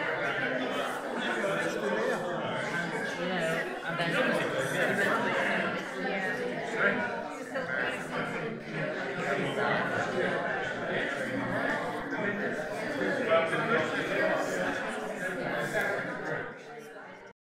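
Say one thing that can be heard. A crowd of elderly men and women chat over one another nearby in a room that echoes.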